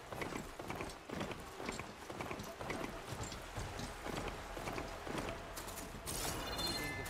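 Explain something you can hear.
Hooves clop rhythmically on hard ground.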